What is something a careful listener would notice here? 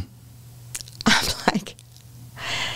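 An elderly woman laughs into a microphone.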